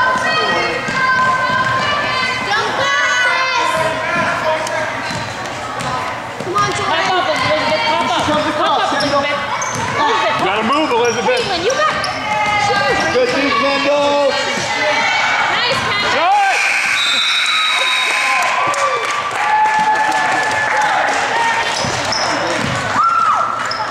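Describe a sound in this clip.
Spectators cheer and shout in an echoing hall.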